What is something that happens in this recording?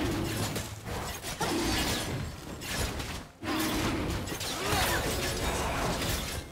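Magic spells and attacks crackle and burst in a fantasy battle.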